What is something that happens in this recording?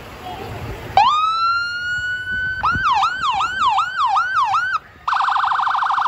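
A fire engine siren wails, then yelps rapidly.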